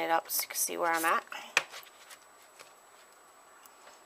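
A paper page of a spiral-bound planner is turned.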